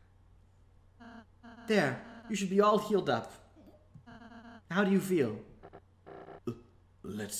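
Quick blipping tones from a game sound along with text.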